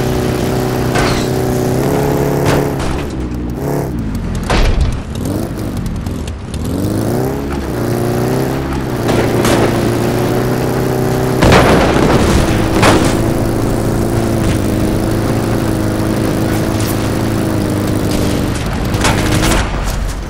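Gunshots crack nearby.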